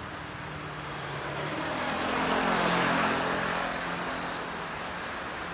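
A car passes close by on the street.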